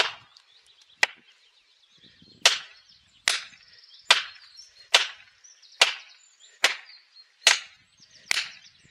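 A sledgehammer strikes a metal wedge in a tree trunk with sharp, ringing clanks at a steady pace.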